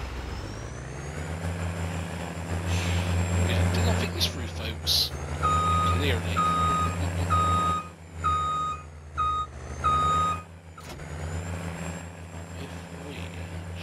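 A tractor engine revs up and down.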